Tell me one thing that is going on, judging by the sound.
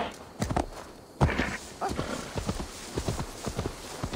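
Tall grass rustles against a horse's legs.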